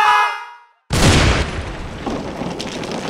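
A wall crashes down with a loud smash.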